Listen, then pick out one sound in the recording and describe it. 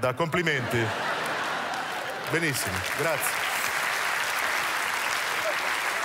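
An audience applauds and cheers.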